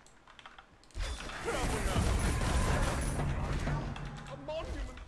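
A magical blast whooshes and crackles loudly.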